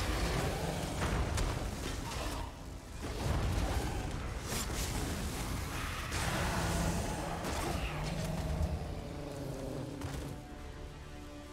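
Electric spell blasts crackle and buzz loudly.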